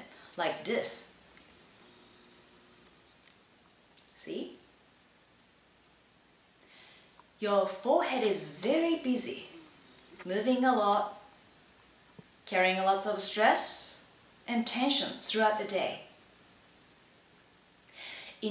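A young woman speaks calmly and clearly, close to a microphone.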